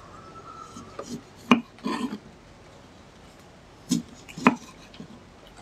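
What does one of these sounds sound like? A knife cuts through a firm fruit and taps on a wooden board.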